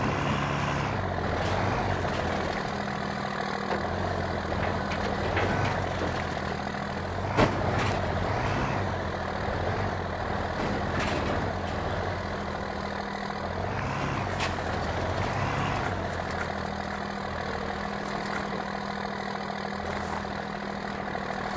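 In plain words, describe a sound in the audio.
An off-road buggy's engine rumbles and revs steadily.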